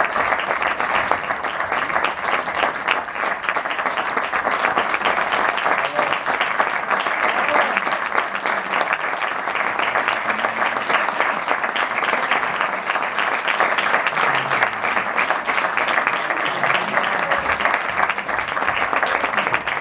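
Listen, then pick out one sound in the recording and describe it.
An audience claps and applauds loudly in a large hall.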